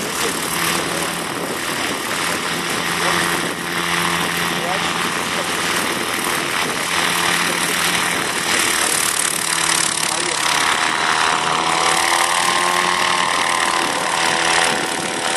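A small model helicopter engine buzzes steadily and rises in pitch as the helicopter lifts off.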